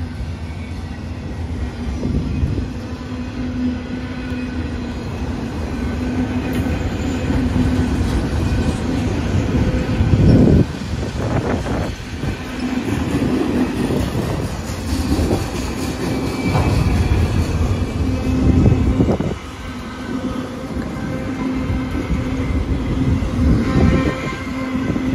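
Train wheels clatter and squeal over the rails.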